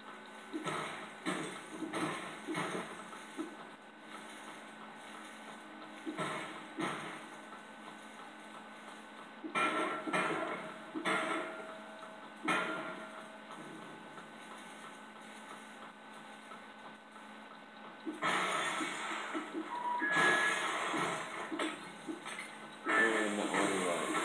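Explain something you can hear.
Video game music plays softly from a television speaker.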